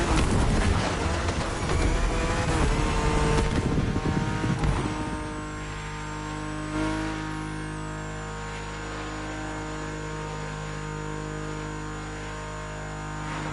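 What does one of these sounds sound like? A racing car engine roars at high speed, loud and rough at first, then settling into a steady drone.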